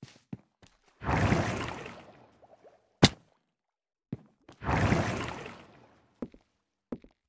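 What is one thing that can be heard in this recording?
Bubbles rush and fizz upward.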